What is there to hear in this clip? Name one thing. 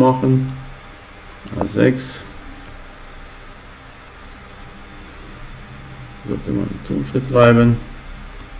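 An elderly man speaks calmly and close to a microphone, in short bursts.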